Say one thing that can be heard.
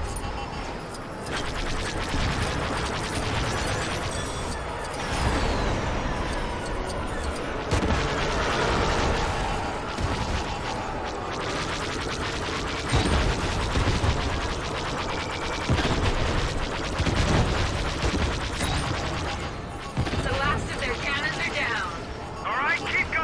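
A starfighter's engines roar steadily.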